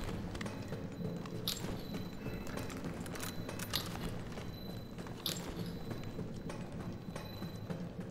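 Footsteps clang on a metal grating.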